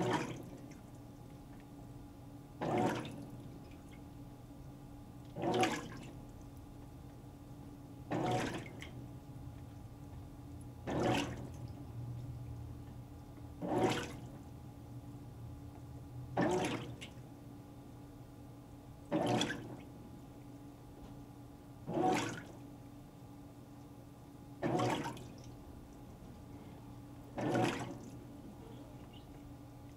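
A washing machine agitator churns back and forth with a rhythmic swishing of water.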